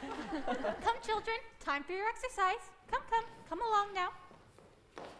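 Young voices sing together.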